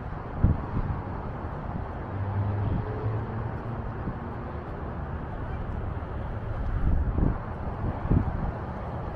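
Footsteps tap on paving stones outdoors.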